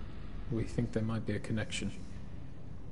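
A man speaks calmly and briefly.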